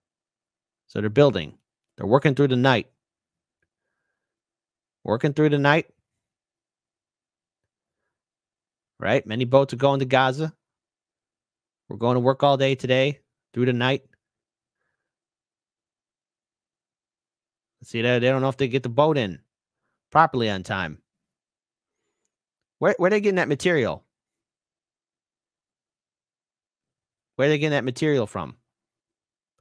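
A man speaks calmly and close into a microphone, in short bursts with long silences between.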